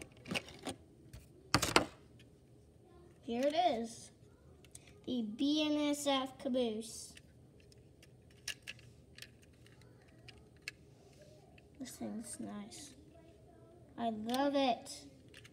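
A small plastic toy clicks and clatters against a wooden tabletop.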